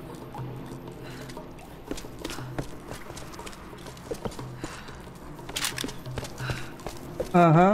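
Footsteps crunch over debris.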